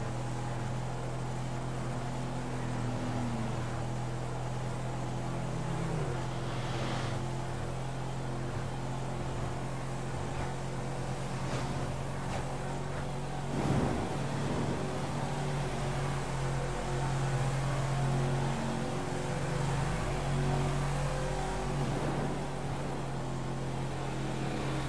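A pickup truck's engine hums steadily.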